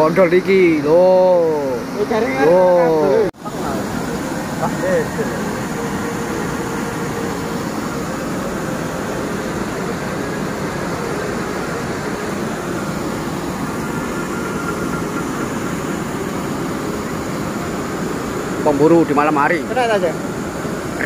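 A young man speaks loudly and close by.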